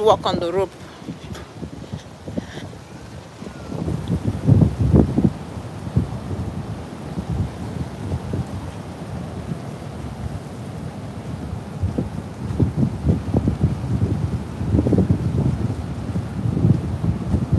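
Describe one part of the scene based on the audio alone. Strong wind gusts and buffets outdoors.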